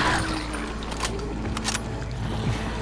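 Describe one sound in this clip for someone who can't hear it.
A gun is reloaded with sharp metallic clicks.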